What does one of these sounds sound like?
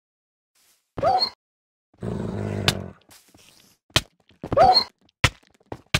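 A wolf growls and barks.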